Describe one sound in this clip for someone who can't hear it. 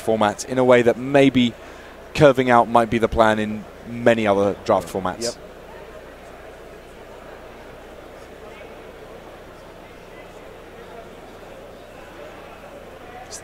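A crowd murmurs steadily in a large hall.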